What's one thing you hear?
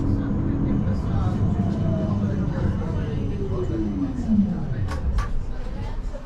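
A tram's brakes whine in a falling tone as it slows to a stop.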